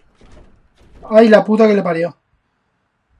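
A young man speaks up close into a microphone.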